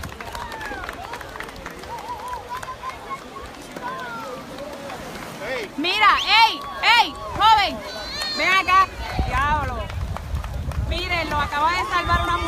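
Several men shout and whoop loudly nearby, outdoors.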